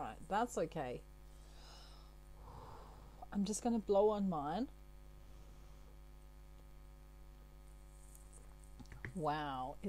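A middle-aged woman speaks calmly and close to a microphone.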